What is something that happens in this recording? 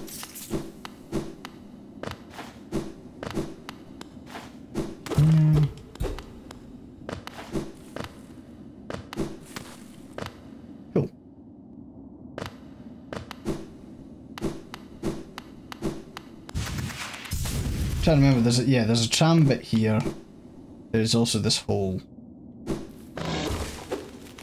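Short clicking game sound effects tap rapidly.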